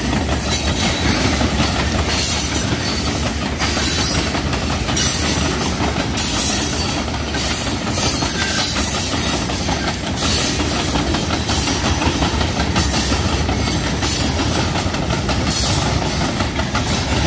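A long freight train rumbles past close by, its wheels clacking on the rails.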